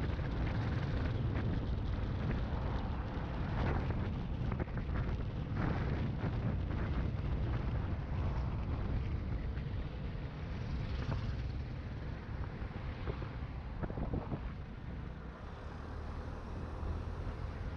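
Wind roars and buffets against a fast-moving microphone outdoors.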